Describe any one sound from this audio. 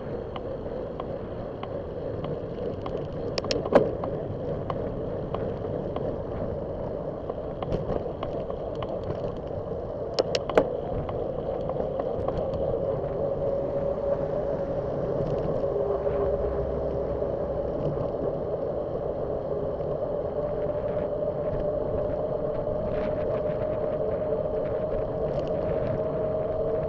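A vehicle engine hums steadily while driving along a road.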